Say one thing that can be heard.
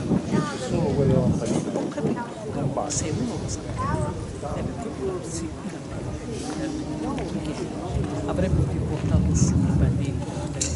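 A man talks through loudspeakers.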